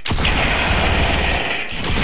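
Gunshots crack in a video game.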